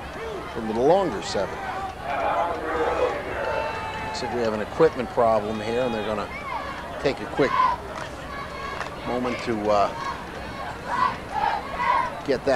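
Several men shout and call out excitedly close by.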